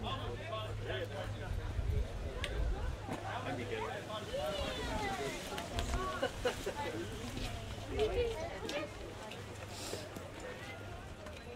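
A woman talks cheerfully nearby.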